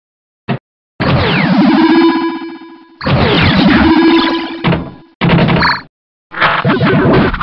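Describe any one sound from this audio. Electronic game sounds sweep and warble loudly.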